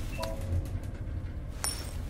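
A coin clicks and rattles between fingers.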